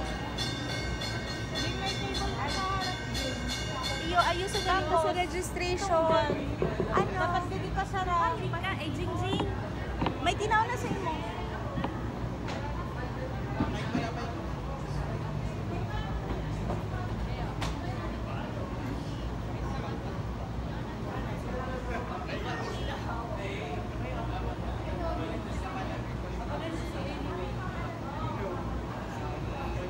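A crowd of people chatters close by.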